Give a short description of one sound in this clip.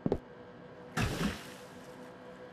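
A man splashes into water.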